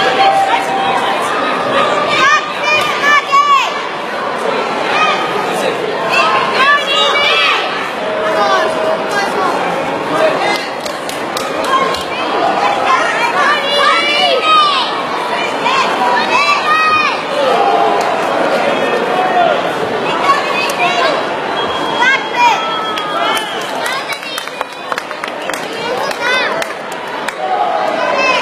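A crowd of adults shouts and cheers in an echoing hall.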